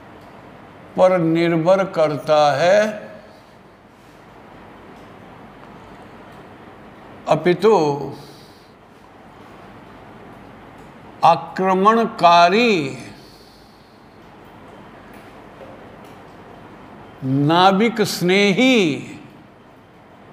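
An elderly man speaks calmly in short bursts, close by.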